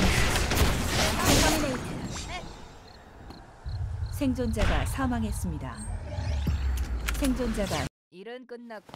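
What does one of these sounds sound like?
Game battle effects blast and crackle.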